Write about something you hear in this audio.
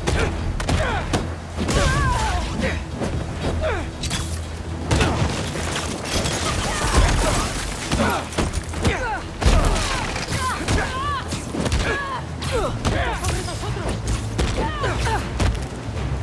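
Punches and kicks thud in a fast fight.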